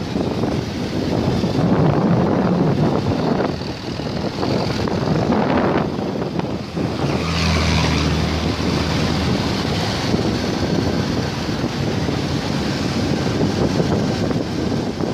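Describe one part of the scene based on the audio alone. Car and motorbike traffic rumbles steadily along a busy road.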